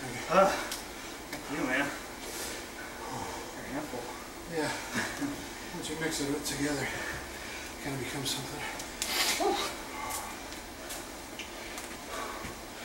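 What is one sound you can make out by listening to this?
A man speaks calmly nearby in an echoing room.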